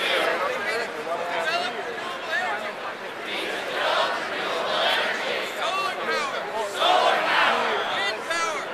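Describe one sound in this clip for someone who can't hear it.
A crowd shouts each phrase back in unison.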